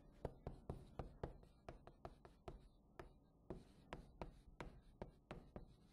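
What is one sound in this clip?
Chalk taps and scrapes quickly on a blackboard.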